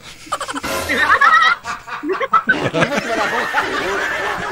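A middle-aged woman laughs heartily over an online call.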